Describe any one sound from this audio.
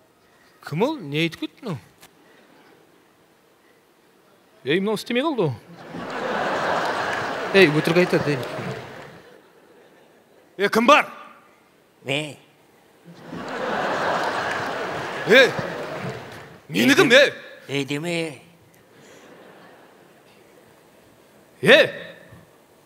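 A man speaks loudly and with animation through a microphone in a large hall.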